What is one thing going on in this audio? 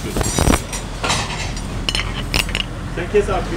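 Ceramic plates clink together.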